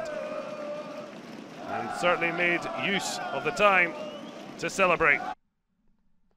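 A large crowd sings and chants loudly in an open stadium.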